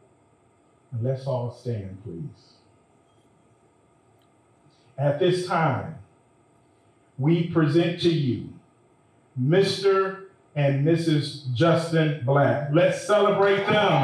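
A man speaks steadily.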